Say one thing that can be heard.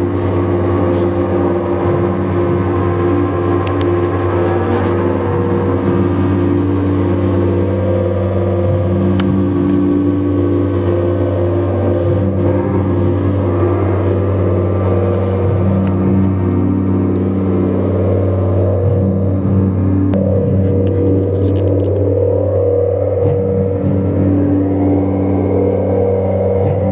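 Electronic instruments play a steady, droning piece with humming low tones and shifting sounds above.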